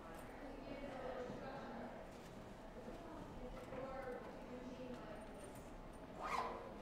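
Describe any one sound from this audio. A woman rummages through a bag.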